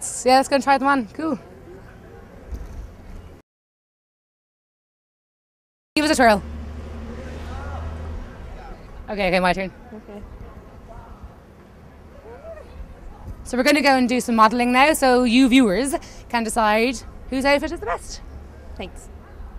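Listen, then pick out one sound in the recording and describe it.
A young woman answers close by, talking cheerfully.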